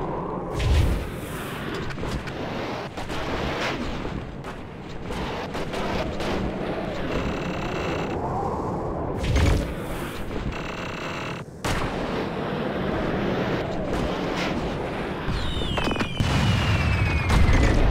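A snowboard hisses and scrapes steadily over snow at high speed.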